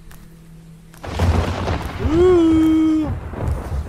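A young man speaks and exclaims with animation close to a microphone.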